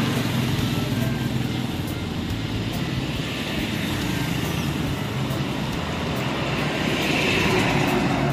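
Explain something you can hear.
Motorbike engines hum as they pass by on a road.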